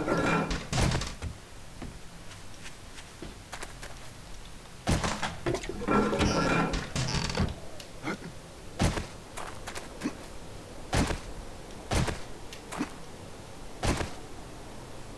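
Footsteps crunch on loose stones.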